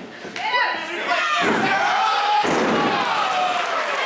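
A wrestler's body thuds onto the ring mat.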